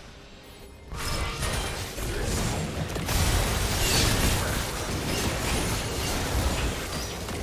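Spell effects and clashing blows burst and crackle in a hectic fight.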